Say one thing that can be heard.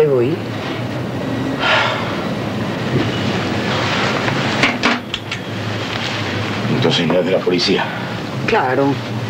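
A man speaks quietly and closely.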